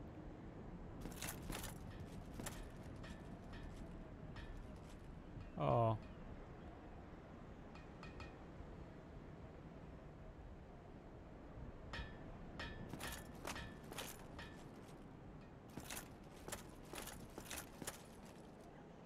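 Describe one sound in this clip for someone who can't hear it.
Armoured footsteps clank on stone and metal.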